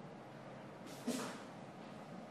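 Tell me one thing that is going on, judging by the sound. A switch knob clicks as it is turned.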